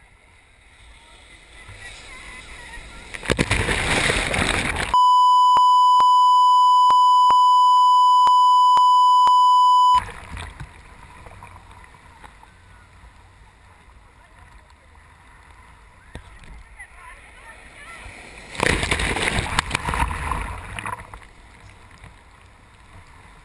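Water sloshes and laps steadily close by.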